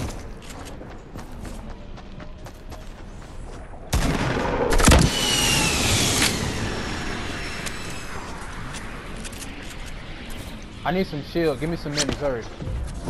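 Wooden panels snap into place with quick, light clicks.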